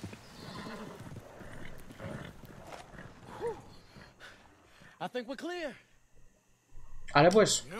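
Horse hooves clop on a dirt track.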